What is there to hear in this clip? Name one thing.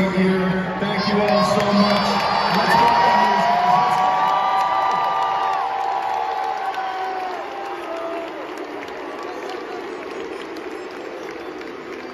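A large crowd cheers and screams loudly in a huge echoing arena, then slowly quiets down.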